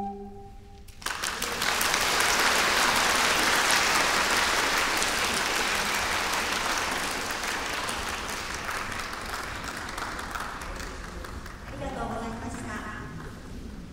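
An audience applauds loudly and the clapping slowly fades.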